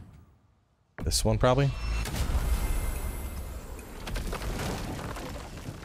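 A magical gateway crackles and shimmers as it opens.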